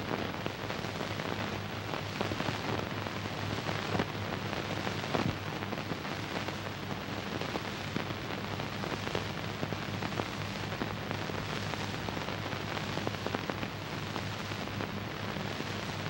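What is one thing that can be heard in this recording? Thin eggshell crackles and crumbles as it slowly collapses.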